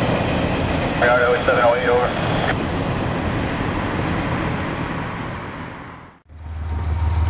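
Cars drive past on a road with a low engine hum.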